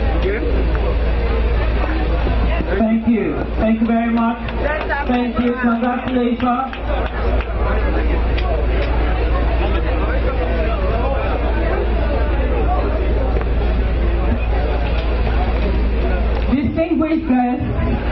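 A crowd of people chatters and murmurs.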